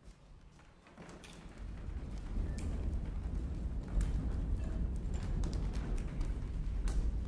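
A grand piano rumbles on its casters as it is rolled across a wooden stage floor.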